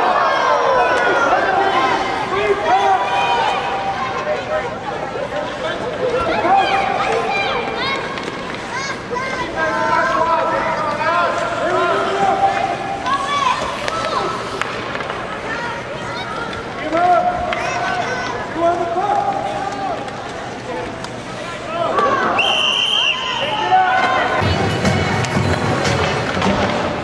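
Young children and adults chatter and call out close by.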